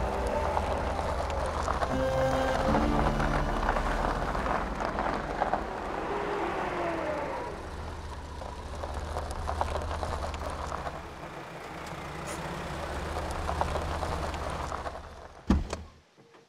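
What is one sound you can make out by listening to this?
A car engine hums as a car drives slowly up and stops.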